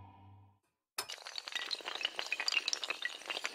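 Dominoes clatter as they topple in a rapid chain.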